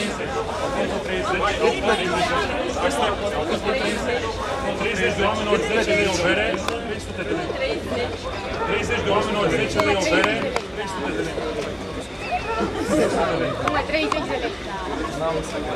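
Several young women and men chatter and laugh nearby outdoors.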